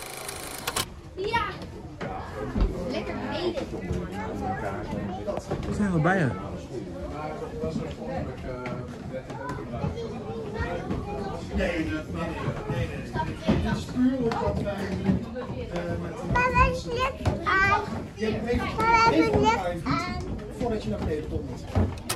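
Young children talk and chatter nearby.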